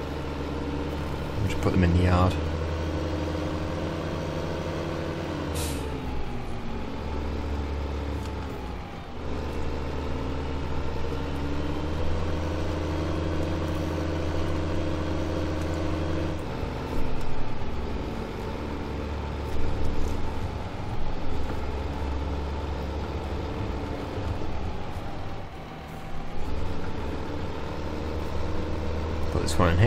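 A tractor engine rumbles steadily and changes pitch as it speeds up and slows down.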